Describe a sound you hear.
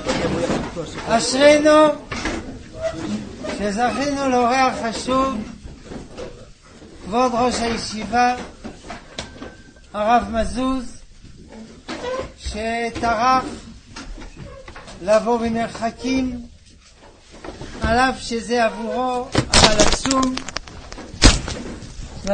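An elderly man sings in bursts with a strong voice.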